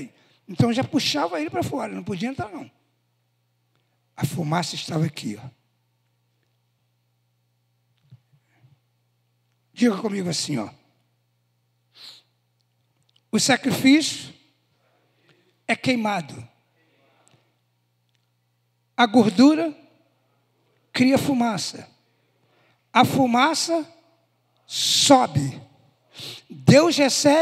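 A man speaks into a microphone with animation, in bursts with pauses, heard through loudspeakers in a large room.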